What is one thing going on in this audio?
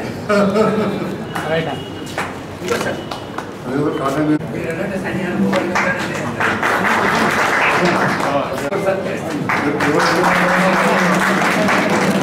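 A man speaks steadily and clearly close by.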